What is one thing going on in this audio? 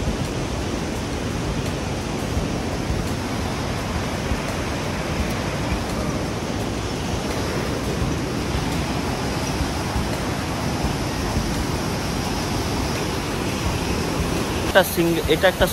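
A river rushes over rocks nearby.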